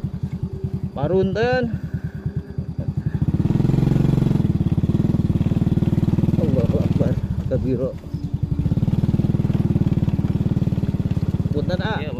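A motorbike engine putters steadily at low speed, revving up at times.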